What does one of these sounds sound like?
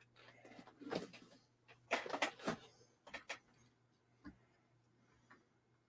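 A cardboard box is handled and set down.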